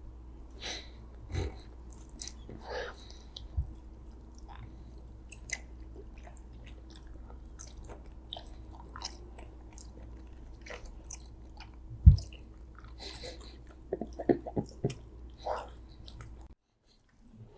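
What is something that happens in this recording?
A man chews and smacks gummy candy close to a microphone.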